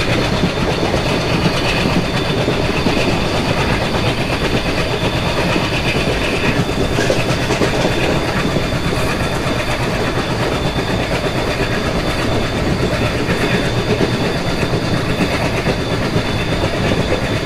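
A train rumbles and clatters steadily along the rails at speed.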